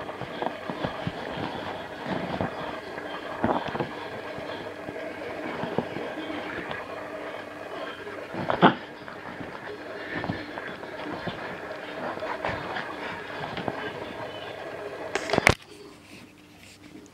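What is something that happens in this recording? Cloth rustles as a puppy tugs and chews at it.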